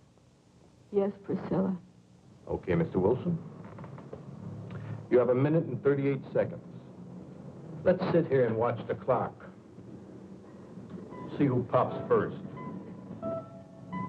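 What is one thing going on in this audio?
A man speaks calmly and earnestly.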